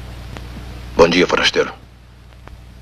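A man speaks in a low, calm voice.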